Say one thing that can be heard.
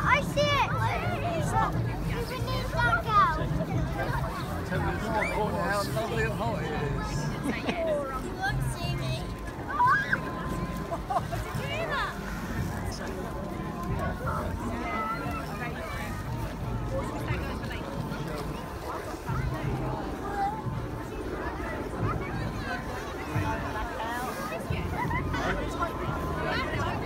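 Wind buffets outdoors in gusts.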